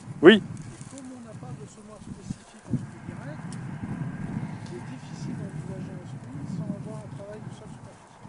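A middle-aged man speaks calmly and clearly, close by, outdoors.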